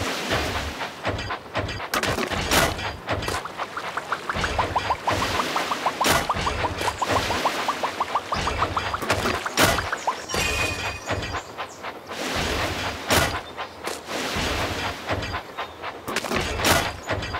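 Toy trains chug along a track.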